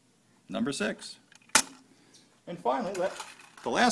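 Metal screws rattle in a plastic dish.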